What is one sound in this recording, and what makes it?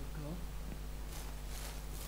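Footsteps crunch softly on grass.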